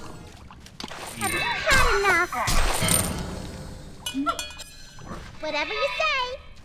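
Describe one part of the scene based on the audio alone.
Magic spells whoosh and crackle in a fantasy battle.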